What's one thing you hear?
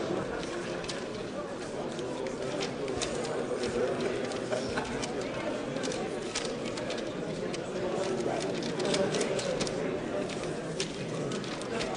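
Paper cards rustle and flap as hands shuffle them.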